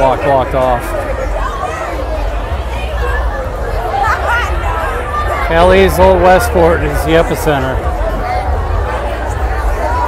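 A large crowd chatters and talks loudly outdoors.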